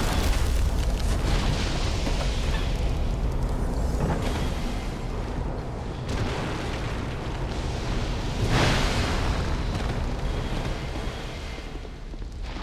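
Heavy footsteps scuff on a stone floor.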